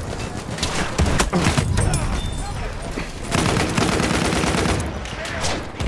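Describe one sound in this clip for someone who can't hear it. Explosions rumble and boom nearby.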